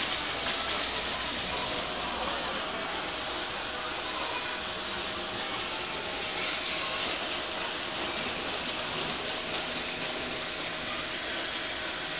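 A crowd's footsteps echo through a large hall.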